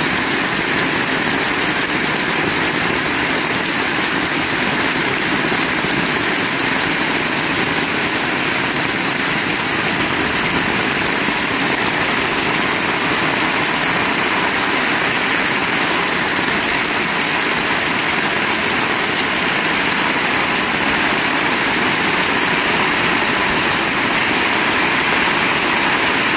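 Heavy rain pours steadily onto a wet road outdoors.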